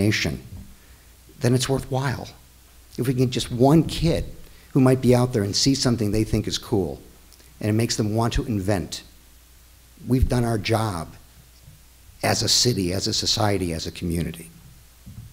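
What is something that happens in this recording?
A middle-aged man speaks with animation into a microphone, in a room with some echo.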